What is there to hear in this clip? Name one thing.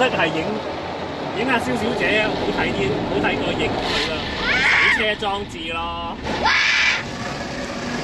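A young girl squeals with laughter.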